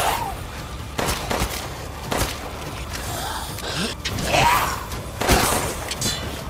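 A pistol fires sharp shots, one at a time.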